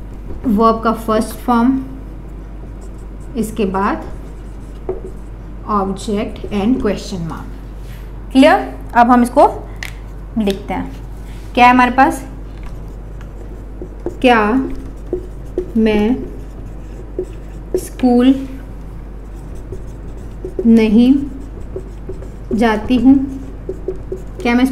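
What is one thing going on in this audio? A young woman speaks clearly and steadily into a close microphone, explaining.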